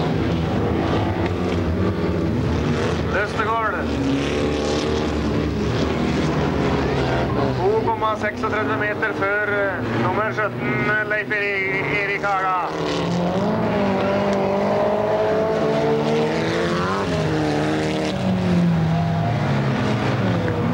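Rally car engines roar and rev.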